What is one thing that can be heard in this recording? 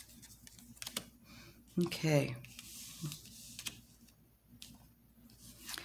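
Playing cards slide and tap softly.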